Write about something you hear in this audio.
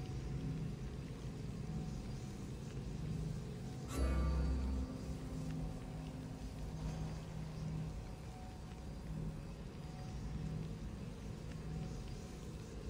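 A small fire flickers and crackles softly.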